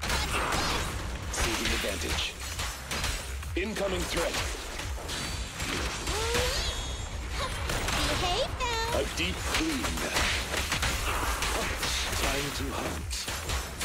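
Sword slashes and energy blasts whoosh and crash in quick succession.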